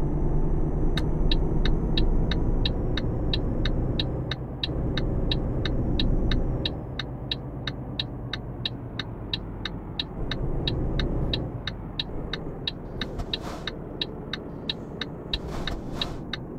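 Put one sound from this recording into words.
A turn signal ticks at a steady, even pace.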